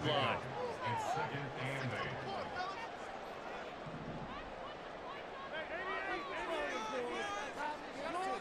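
A large stadium crowd cheers and whistles.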